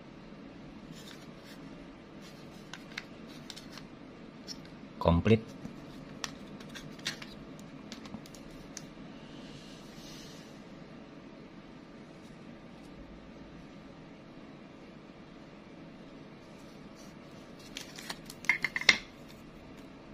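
A plastic case clicks and rattles as it is handled.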